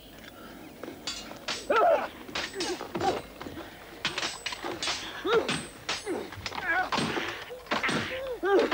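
Wooden and metal blows clash and thud during a fight.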